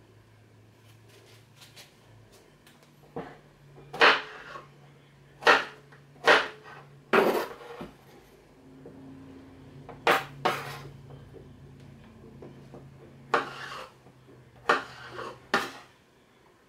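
A knife slices through zucchini and taps on a cutting board.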